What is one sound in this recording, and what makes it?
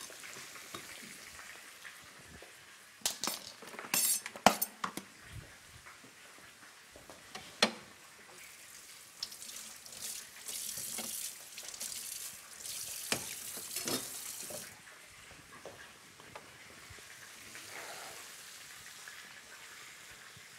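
Chicken sizzles and crackles in a frying pan.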